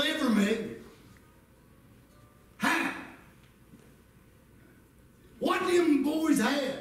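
A middle-aged man preaches emphatically into a microphone, his voice echoing through a loudspeaker in a hall.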